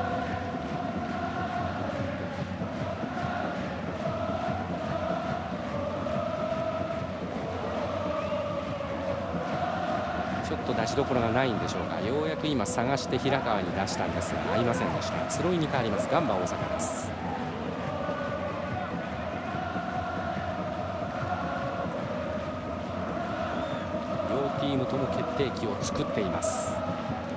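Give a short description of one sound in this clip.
A large stadium crowd chants and sings steadily in rhythm.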